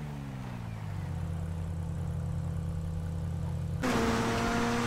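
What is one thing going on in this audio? An engine idles with a steady low hum.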